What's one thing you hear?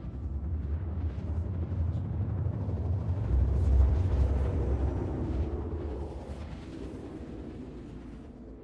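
A spaceship engine rumbles low and steady, swelling and then slowly fading.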